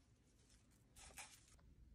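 Plastic gloves crinkle against cardboard.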